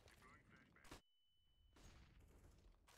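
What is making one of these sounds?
A flash grenade bursts with a sharp bang, followed by a high steady ringing.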